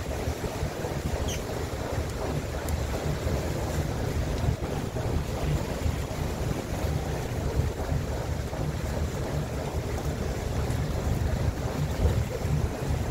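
A boat's engine rumbles steadily.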